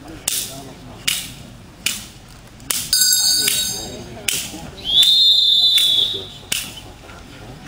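A padded stick slaps sharply, again and again.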